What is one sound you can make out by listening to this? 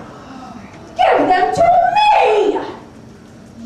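A woman cackles and shouts in a witch's voice.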